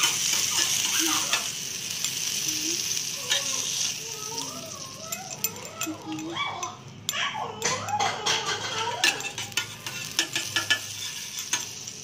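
A metal spatula scrapes against a griddle.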